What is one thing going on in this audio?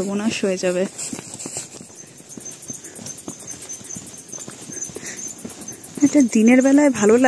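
Footsteps crunch on grass and stones.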